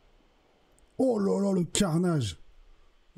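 A man exclaims loudly into a close microphone.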